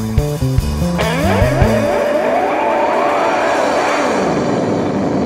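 An electric guitar wails with sliding, rising notes through an amplifier.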